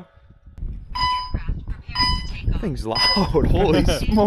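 A remote controller beeps several times.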